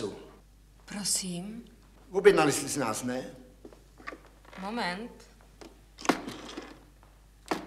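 A young woman speaks calmly into a telephone.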